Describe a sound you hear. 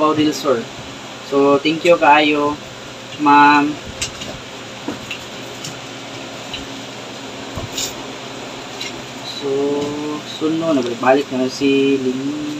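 Paper rustles as papers are handled.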